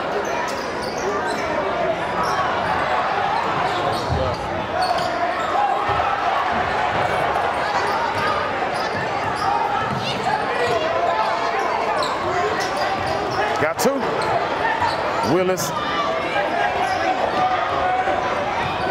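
A large crowd murmurs and cheers in an echoing gym.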